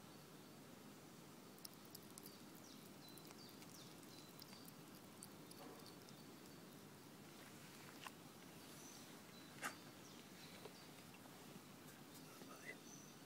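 A hedgehog snuffles and rustles through dry leaves close by.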